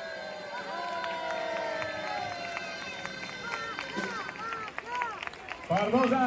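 Sharp crackling bursts of fireworks pop nearby.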